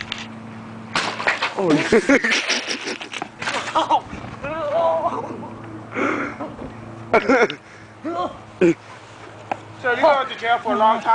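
Young men shout and laugh outdoors.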